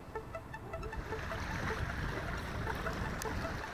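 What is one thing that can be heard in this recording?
Sea water laps against rocks.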